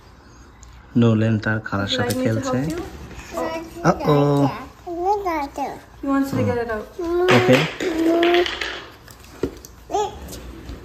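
A woman talks warmly and playfully to small children nearby.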